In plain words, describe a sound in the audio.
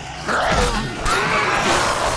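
A blade hacks into flesh with a wet, heavy thud.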